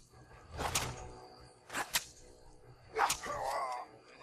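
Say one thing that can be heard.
A heavy blade strikes a body with sharp, wet thuds.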